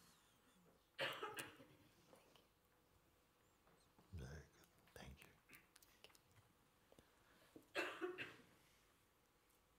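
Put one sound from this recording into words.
A man speaks softly with a gentle laugh.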